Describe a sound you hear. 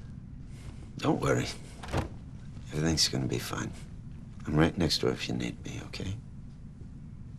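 A man speaks calmly and reassuringly, close by.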